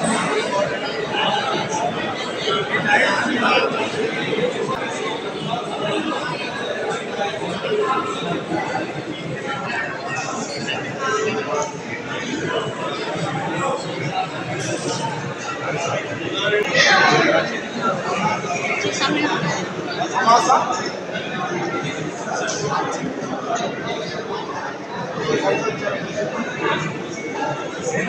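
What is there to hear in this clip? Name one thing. A crowd of men and women chatters nearby in an echoing hall.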